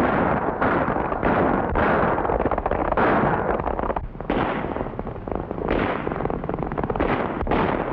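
Horses gallop fast, their hooves pounding the ground.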